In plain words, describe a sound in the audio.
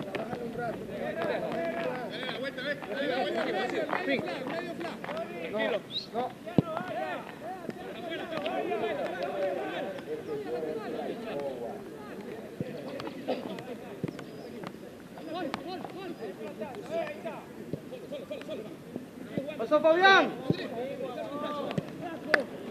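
A football thuds as a player kicks it on grass.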